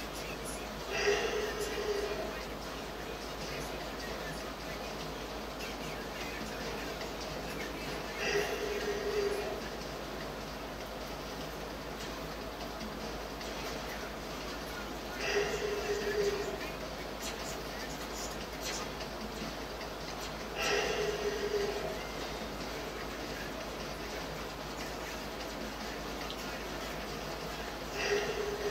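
Short bursts of video game sound effects play every few seconds through a television speaker.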